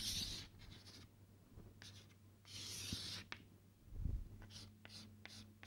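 Chalk scrapes and taps on a blackboard in short bursts.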